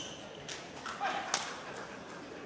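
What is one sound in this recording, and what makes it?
A badminton racket taps a shuttlecock in a large echoing hall.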